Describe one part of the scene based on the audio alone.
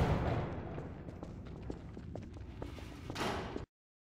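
Footsteps echo along a narrow corridor.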